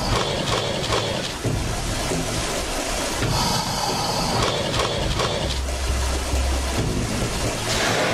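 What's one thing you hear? White water rushes loudly down a river.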